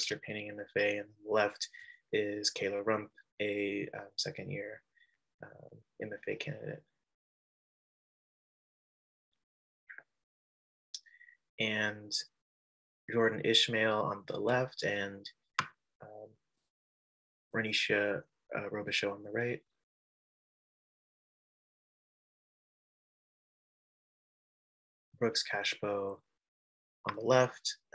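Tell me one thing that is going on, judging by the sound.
A man speaks calmly over an online call, with pauses.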